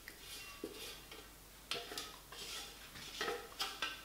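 Food slides from a metal bowl into a glass dish.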